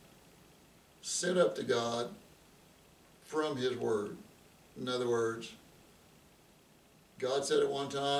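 An elderly man speaks calmly and close to a microphone, in short phrases with pauses.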